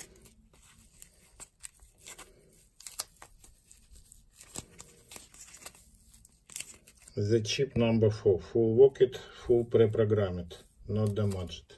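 Foam rubs and squeaks softly against fingers.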